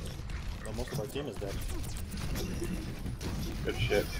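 Gunshots and blasts crackle in a fight.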